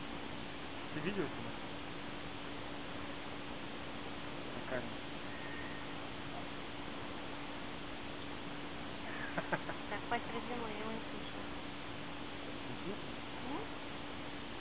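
A kitten meows close by, now and then.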